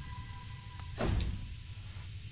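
A deep whoosh rushes past.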